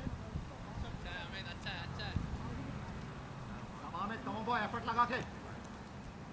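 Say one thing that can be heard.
Men call out loudly from across an open field.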